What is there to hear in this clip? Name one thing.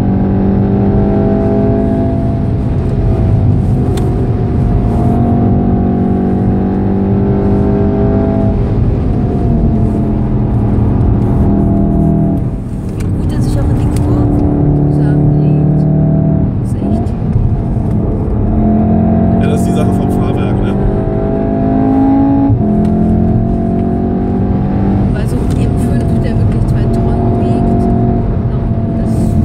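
A car engine roars loudly at high revs, its pitch rising and falling through gear changes.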